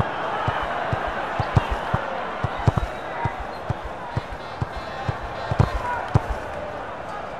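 A football is kicked with dull thuds, again and again.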